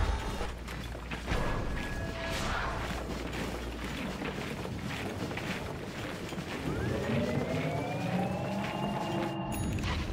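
Game creatures clash and hit each other.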